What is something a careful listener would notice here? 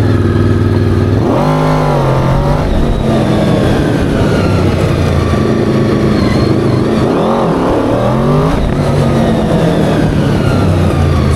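Tyres skid and scrape on pavement.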